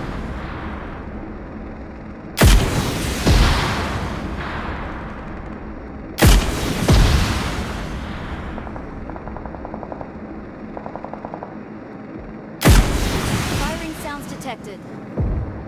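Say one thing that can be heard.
A combat drone hums as it hovers.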